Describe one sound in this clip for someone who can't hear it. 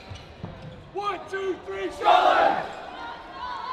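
A group of young men shout together in a loud team cheer.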